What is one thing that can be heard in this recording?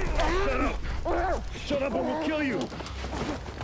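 A young man cries out, muffled.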